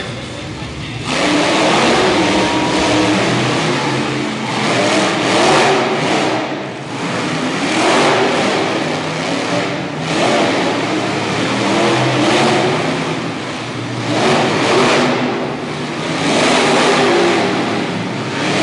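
A monster truck engine roars and revs loudly in waves.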